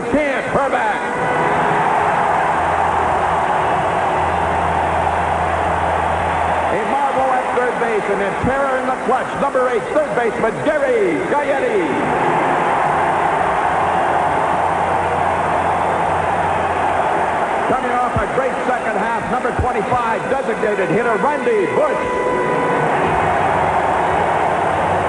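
A large crowd cheers and roars steadily in a big echoing stadium.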